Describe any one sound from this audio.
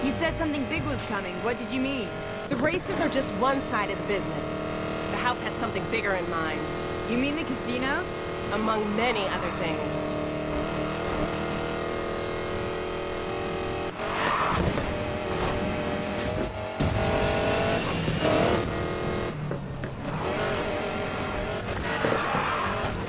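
A car engine roars at high speed.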